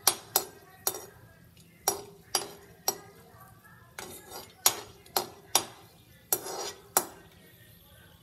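A metal spatula clanks and scrapes against a metal pan.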